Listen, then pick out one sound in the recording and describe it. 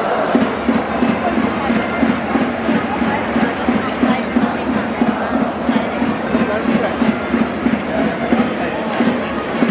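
A stadium crowd claps and bangs noisemakers to a steady fast beat.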